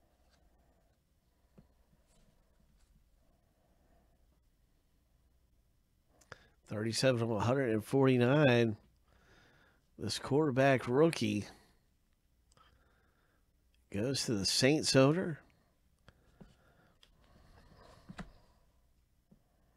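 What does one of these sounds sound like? Trading cards rustle and slide against each other in handling.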